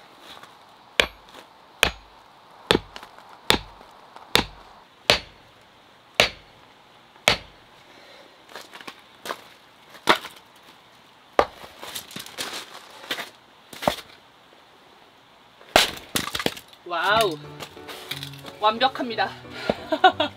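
An axe splits wood with sharp, repeated knocks.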